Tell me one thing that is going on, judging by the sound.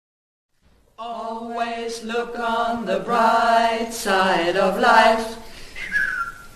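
Three women sing together close by.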